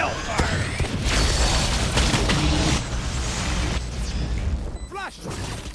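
Gunfire and explosions roar from a video game.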